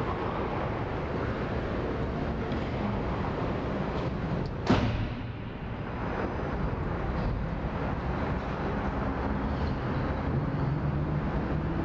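Skates scrape on ice.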